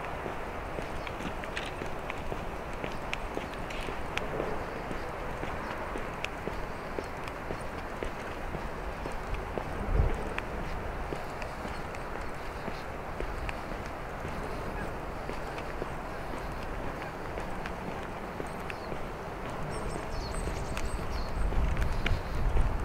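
Wind blows steadily outdoors, gusting now and then.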